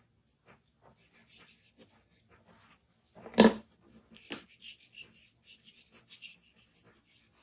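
A pencil scratches and hisses softly across paper.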